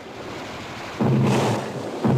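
A mortar fires with a loud thump.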